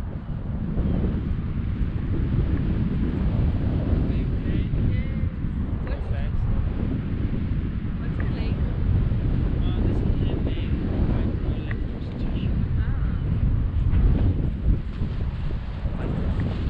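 Wind rushes and buffets against a microphone during a paraglider flight.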